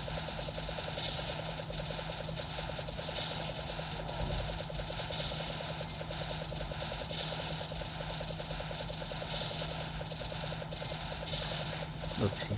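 An electronic whoosh bursts about every two seconds.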